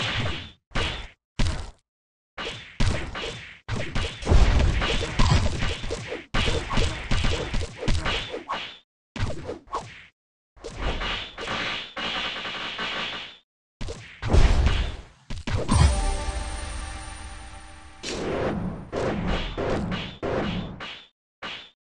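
Sword slashes and hit effects from a game crackle in quick bursts.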